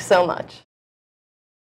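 A young woman speaks cheerfully and close to a microphone.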